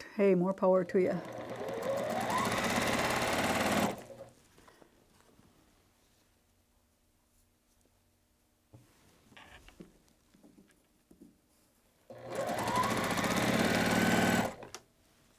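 A sewing machine runs, stitching rapidly.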